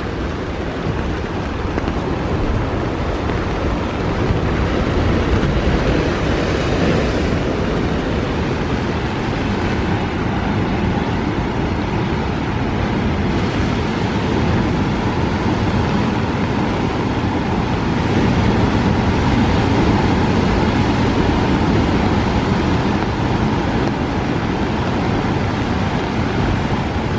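Wind blows hard and rushes steadily outdoors.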